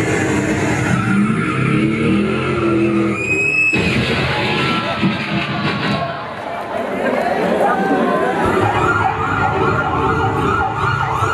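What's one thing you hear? Music plays loudly through loudspeakers.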